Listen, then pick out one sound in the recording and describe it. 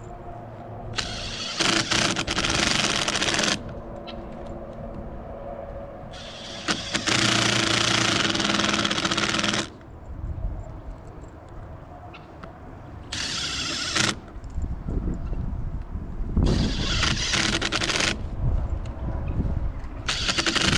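A cordless drill whirs in short bursts, driving screws.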